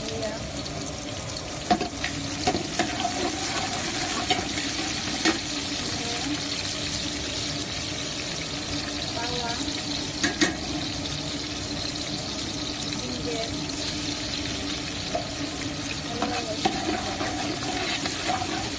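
Chopped onions sizzle in hot oil in a pot.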